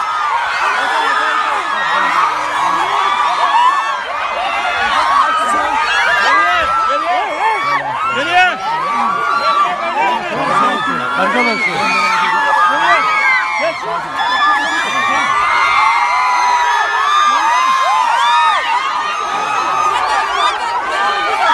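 A large crowd screams and cheers loudly close by.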